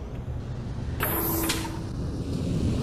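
A heavy door slides open with a sharp hiss.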